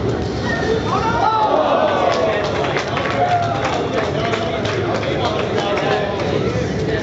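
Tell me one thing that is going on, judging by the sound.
A crowd of young men cheers and shouts loudly.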